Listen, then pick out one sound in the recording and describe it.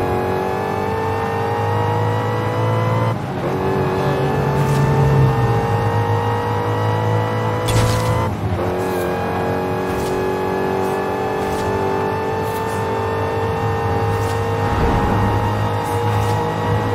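Tyres rush over a road at high speed.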